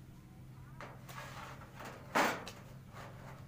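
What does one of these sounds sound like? A rubber seat scrapes and bumps against a metal sheet.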